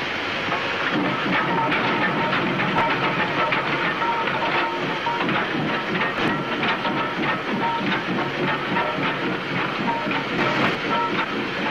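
A steam locomotive hisses loudly, releasing steam.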